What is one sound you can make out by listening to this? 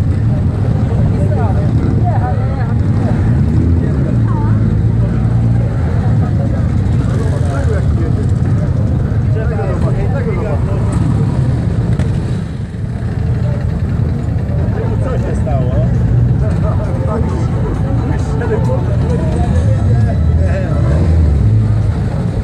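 Motorcycles ride slowly past close by.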